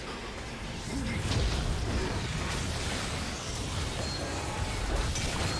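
Magic spells blast and crackle in a fast fight.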